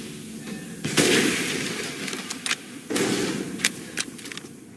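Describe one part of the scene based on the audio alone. A scoped rifle fires loud shots that echo through a large room.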